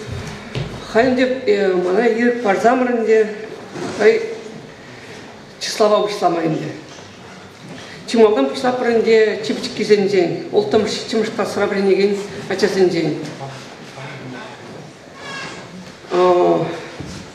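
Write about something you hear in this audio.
A young man reads out loud into a microphone in an echoing hall.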